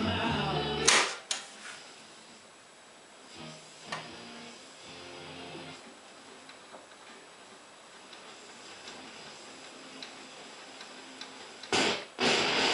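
A radio hisses faintly while its tuning knob turns.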